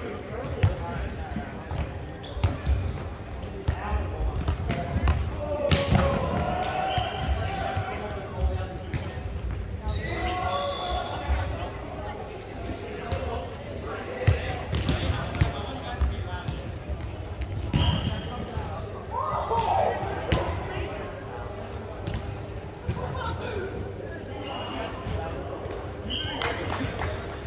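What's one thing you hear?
Young men call out and talk loudly across an echoing hall.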